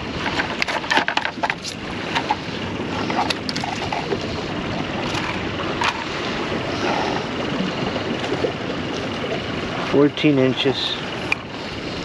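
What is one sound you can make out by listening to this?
Hands click and rustle while handling fishing gear.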